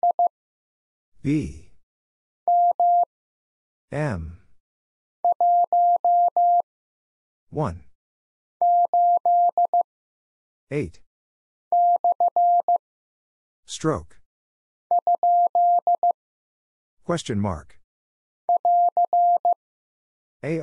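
Short electronic beeps tap out Morse code in quick bursts.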